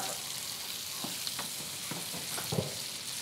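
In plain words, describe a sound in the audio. Kitchen utensils clink and clatter against a pan.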